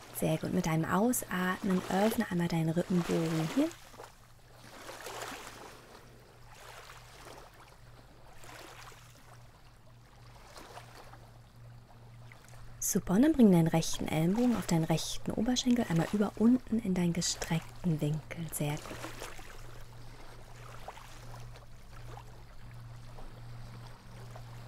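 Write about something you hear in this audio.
Small waves lap gently at a shore.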